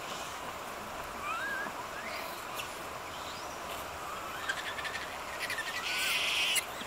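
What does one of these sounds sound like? Monkeys give short high calls.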